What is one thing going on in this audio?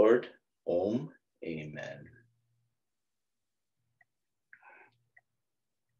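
A middle-aged man speaks calmly and softly close to a microphone, with long pauses.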